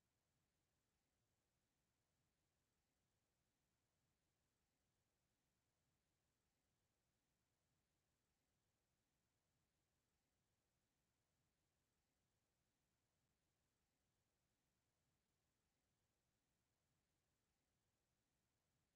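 A clock ticks softly and steadily.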